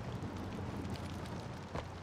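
Footsteps crunch on a debris-strewn concrete floor.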